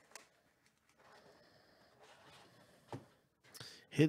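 A cardboard box lid slides open.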